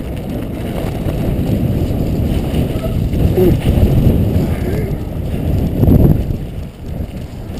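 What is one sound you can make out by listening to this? Wind buffets loudly against the microphone outdoors.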